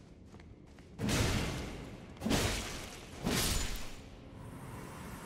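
Blades swing and strike in a fight.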